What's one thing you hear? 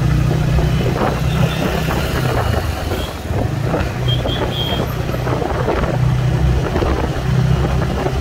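A motorcycle engine hums steadily up close.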